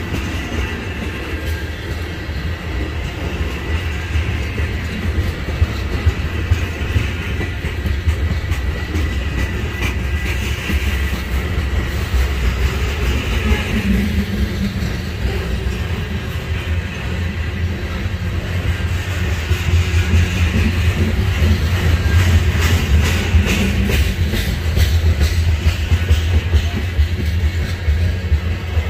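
Steel wheels squeal faintly against the rails.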